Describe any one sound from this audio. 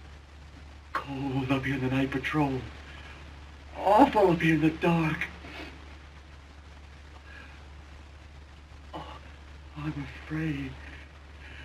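A man speaks in a strained, frightened voice.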